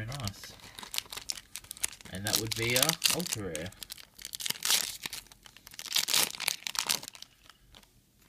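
A foil wrapper crinkles and rustles loudly.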